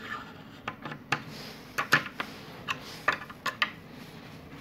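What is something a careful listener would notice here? Small metal tools click and tap against a rotor hub.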